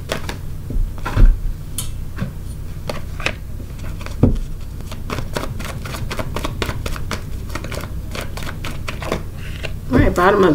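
Playing cards riffle and flick as a deck is shuffled.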